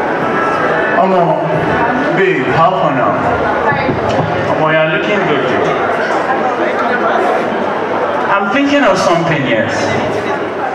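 A young man speaks into a microphone with animation, heard through loudspeakers.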